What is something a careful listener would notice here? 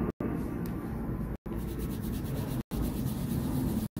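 A crayon scratches across paper.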